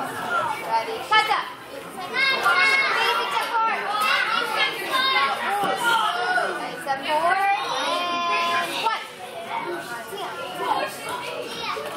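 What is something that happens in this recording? A young girl speaks loudly and clearly, as if reciting, in an echoing hall.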